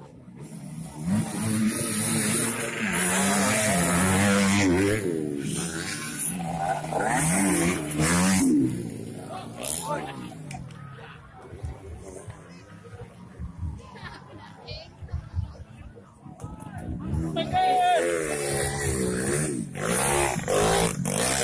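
A dirt bike engine roars loudly close by as it revs up the hill.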